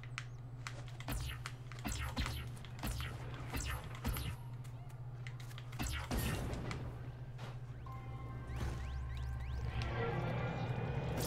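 Energy blasts crackle and whoosh in bursts.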